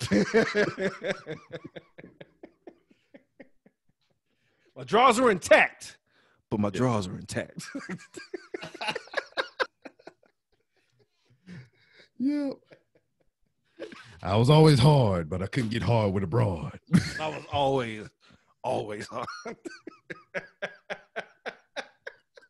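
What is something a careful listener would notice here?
A man laughs close to a microphone over an online call.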